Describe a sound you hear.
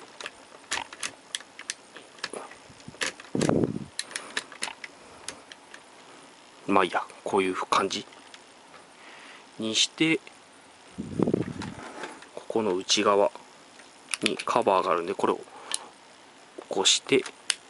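Plastic parts of a toy click and snap as they are moved by hand.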